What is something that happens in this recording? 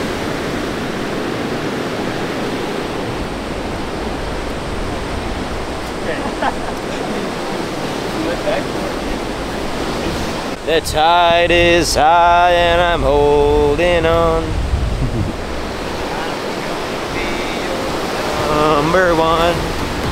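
Waves wash onto the shore steadily, outdoors in wind.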